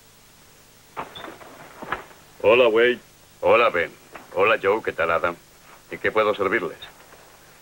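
Men talk.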